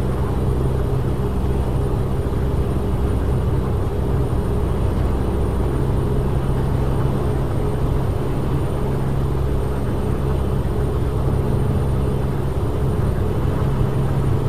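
Tyres roll with a steady rumble on the road.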